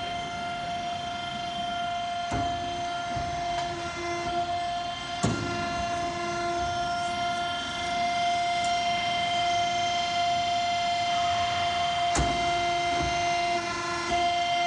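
A roll forming machine hums steadily with a constant whine.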